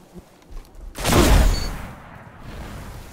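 A sniper rifle fires a loud, booming shot.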